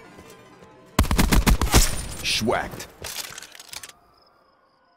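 Gunfire rattles loudly in rapid bursts.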